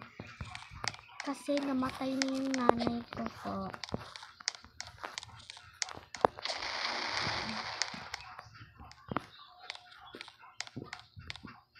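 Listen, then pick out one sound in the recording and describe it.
Light footsteps patter across a hard floor.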